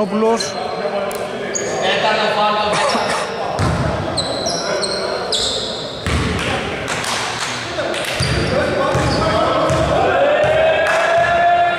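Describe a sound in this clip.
A basketball thumps on the wooden floor.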